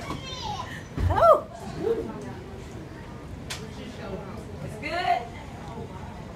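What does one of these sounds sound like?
A small child babbles and squeals.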